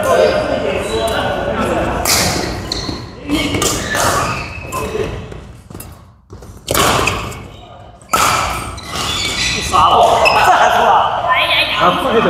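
Sports shoes squeak on the court floor.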